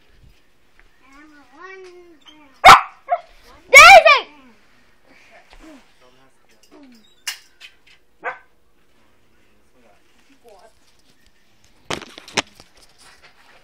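Children shout and squeal outdoors a short way off.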